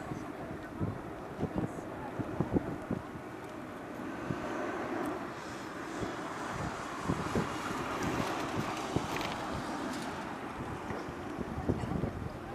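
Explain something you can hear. A jet airliner roars overhead, its steady rumble swelling and then slowly easing.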